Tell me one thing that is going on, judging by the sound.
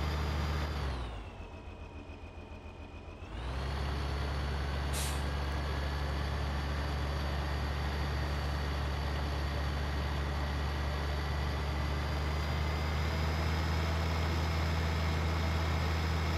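A tractor engine drones steadily, rising slightly in pitch as it speeds up.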